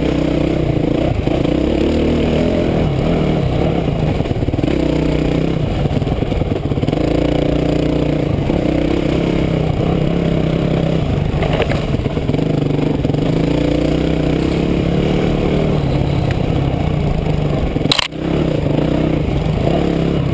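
A dirt bike engine drones loudly and steadily, rising and falling in pitch as the rider works the throttle.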